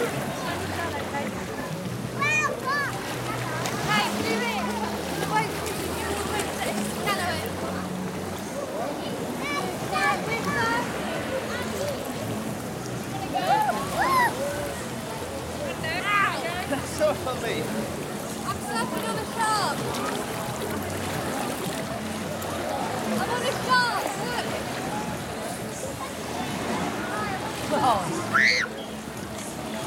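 Many children and adults shout and chatter across a busy outdoor pool.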